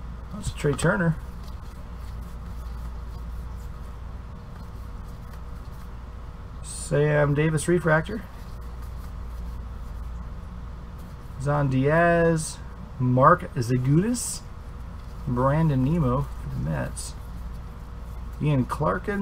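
Stiff cards slide and flick against each other as a stack is sorted by hand.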